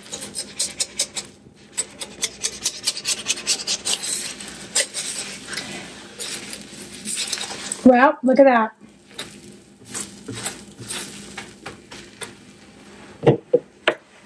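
Batter sizzles and crackles on a hot griddle.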